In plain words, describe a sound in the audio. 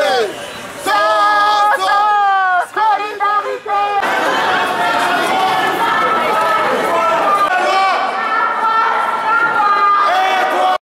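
A crowd of young people sings and chants loudly outdoors.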